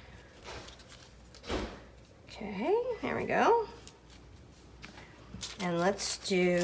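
Paper rustles and crinkles softly under a hand.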